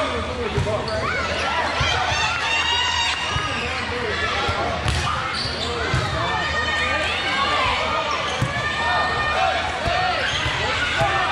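Young girls shout and call out to each other in an echoing hall.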